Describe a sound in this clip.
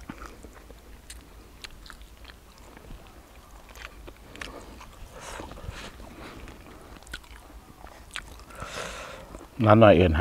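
A middle-aged man chews food close by.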